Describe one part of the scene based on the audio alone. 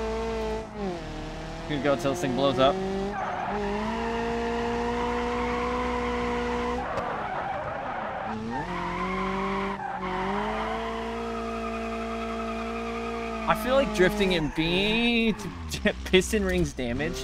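A car engine revs hard, rising and falling as the gears change.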